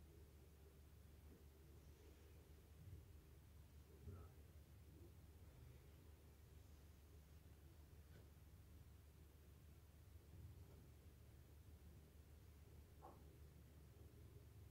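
A needle pokes through fabric with faint taps.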